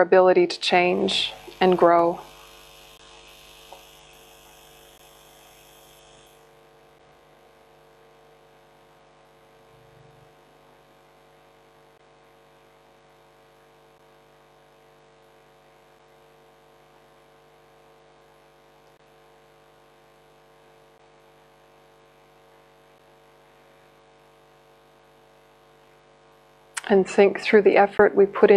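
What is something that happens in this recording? A young woman speaks calmly and softly into a close microphone.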